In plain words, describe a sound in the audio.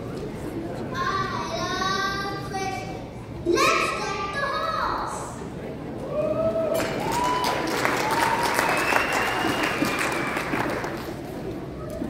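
A children's choir sings in a large echoing hall.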